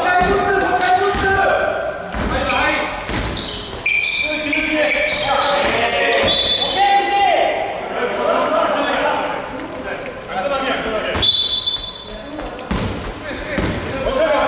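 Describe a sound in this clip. Young men shout to each other in a large echoing hall.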